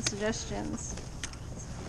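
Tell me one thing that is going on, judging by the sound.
A young man speaks briefly up close.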